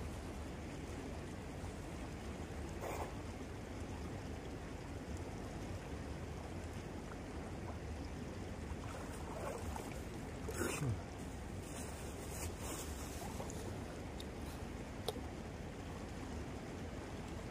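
Water splashes as a man wades and moves a net.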